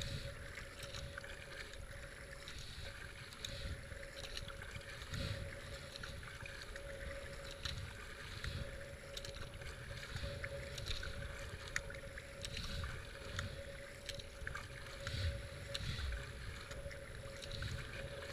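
River water rushes and gurgles around a kayak.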